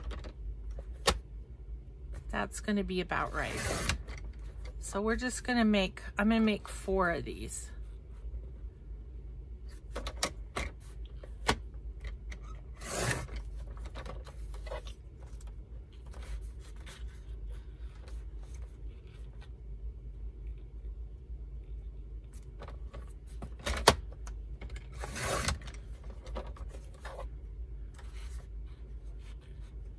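Paper rustles and taps softly as it is handled.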